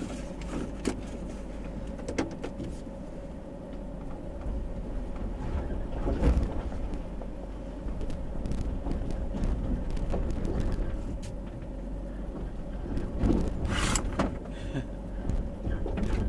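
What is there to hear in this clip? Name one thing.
A vehicle engine rumbles steadily from inside a car.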